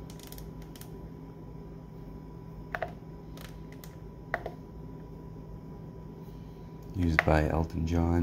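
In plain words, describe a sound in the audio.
Fingers tap and click buttons on a controller.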